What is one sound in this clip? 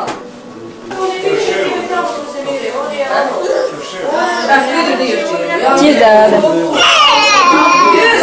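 Young children babble and shout nearby.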